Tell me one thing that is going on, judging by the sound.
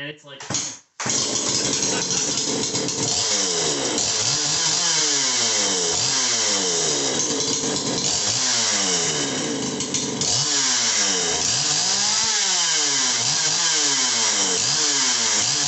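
An electric chainsaw whines loudly, its motor revving up and down.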